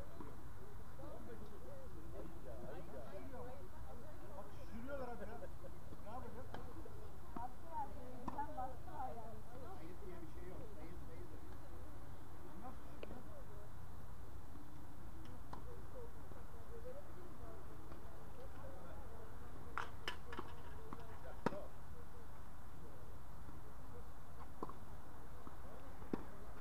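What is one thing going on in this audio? Tennis balls pop off rackets at a distance outdoors.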